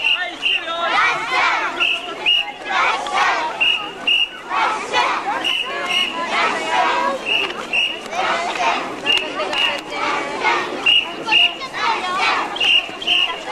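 A group of children chants loudly and rhythmically outdoors.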